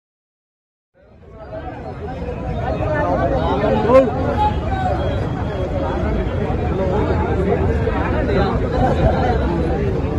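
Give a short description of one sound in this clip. A crowd of people talks and clamours loudly outdoors.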